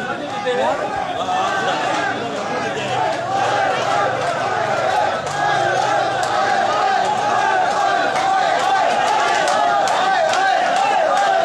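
Men chant loudly together in a marching crowd.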